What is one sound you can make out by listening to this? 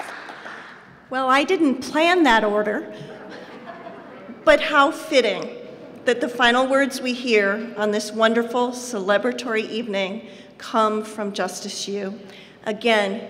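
A middle-aged woman speaks warmly into a microphone in a large room.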